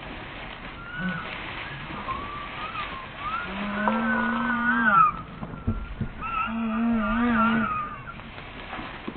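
A hare squeals shrilly in distress, on and off.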